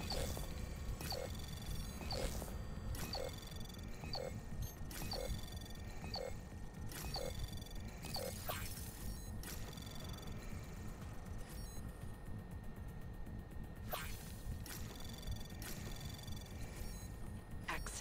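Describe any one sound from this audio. Electronic game beeps tick steadily about once a second.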